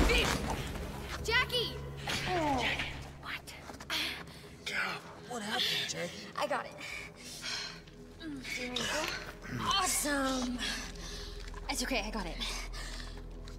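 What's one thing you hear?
A woman cries out in distress close by.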